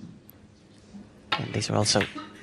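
A cue strikes a snooker ball with a sharp click.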